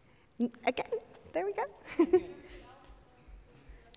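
A woman speaks with animation into a microphone in an echoing hall.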